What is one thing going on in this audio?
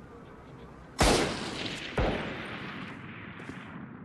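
A rifle fires two loud shots that ring out and fade.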